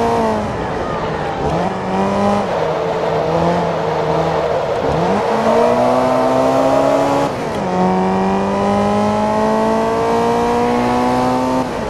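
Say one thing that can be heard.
A racing car engine revs high, dropping and rising as the gears shift.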